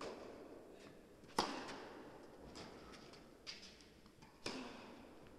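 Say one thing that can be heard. Sneakers squeak and scuff on a court.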